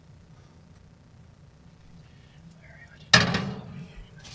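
A metal pan clanks.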